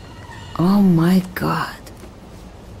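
A young woman exclaims in surprise, close by.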